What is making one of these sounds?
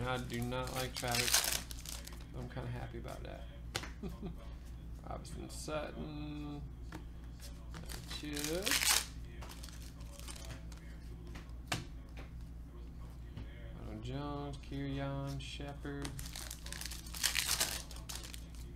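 Foil wrappers tear open with a loud crinkling rip.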